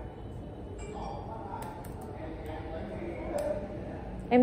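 Fingers tap on laptop keys.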